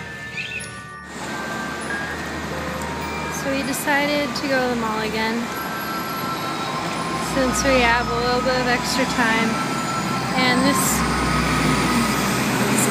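Heavy traffic rumbles steadily along a busy road.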